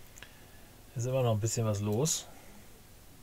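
A man speaks briefly and casually into a close microphone.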